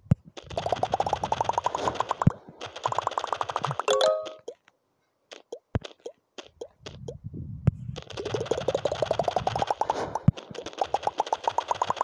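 A game ball smashes through platforms with rapid rising pitched pops.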